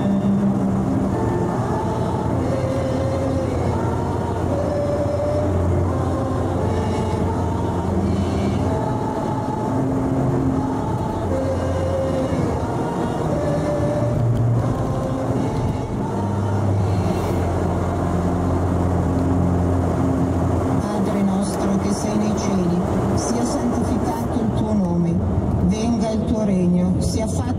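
A car engine hums steadily and shifts in pitch as the car drives.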